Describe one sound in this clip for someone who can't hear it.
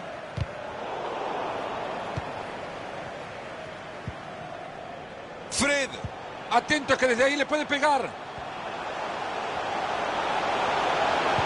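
A stadium crowd roars steadily and swells louder toward the end.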